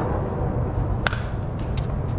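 A bat cracks sharply against a ball outdoors.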